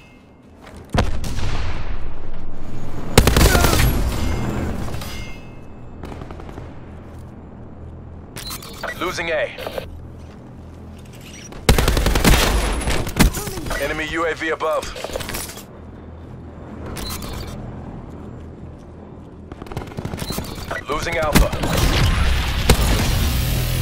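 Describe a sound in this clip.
Rapid gunfire bursts out loudly in short volleys.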